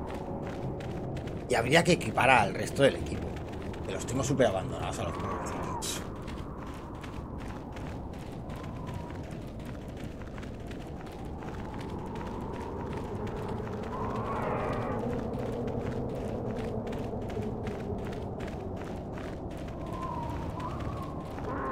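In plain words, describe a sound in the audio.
Footsteps crunch quickly over sand.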